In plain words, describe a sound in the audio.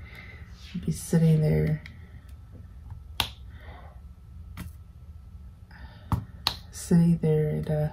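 Tweezers tap and click lightly on a hard surface.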